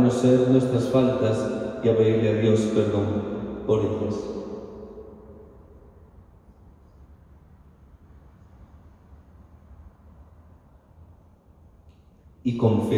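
A man chants in a steady voice through a microphone, echoing in a large hall.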